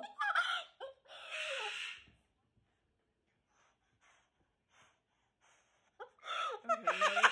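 A cockatoo squawks and screeches loudly up close.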